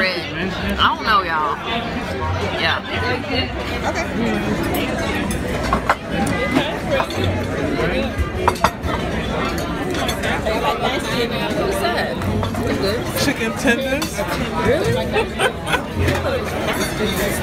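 Many people chatter in the background of a busy, noisy room.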